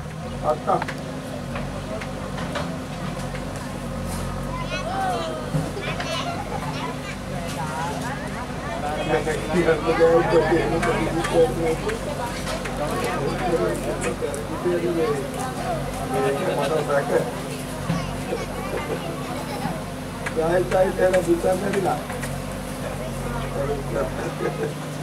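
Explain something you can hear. A large outdoor crowd of men and women chatters and calls out.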